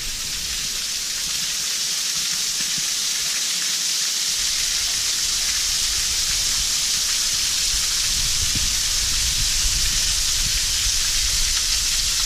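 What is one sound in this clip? A waterfall pours and splashes steadily close by.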